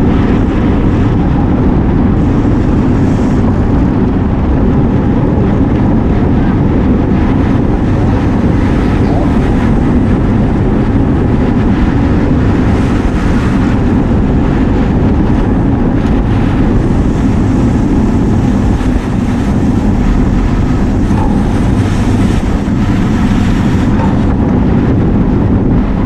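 Wind buffets loudly and steadily, as when riding fast outdoors.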